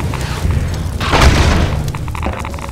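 A wooden crate splinters and breaks.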